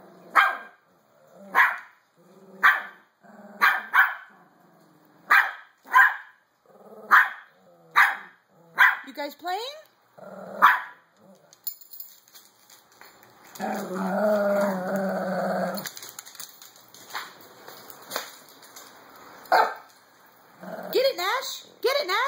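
A small dog barks sharply again and again, close by.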